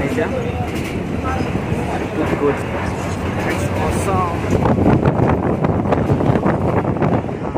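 A vehicle's engine rumbles steadily as it drives along a road.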